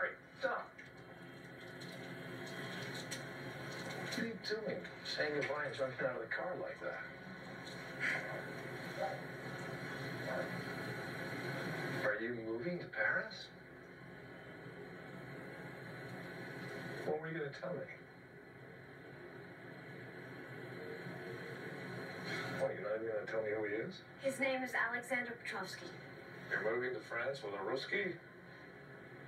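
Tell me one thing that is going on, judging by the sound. A man speaks calmly, heard through a television speaker.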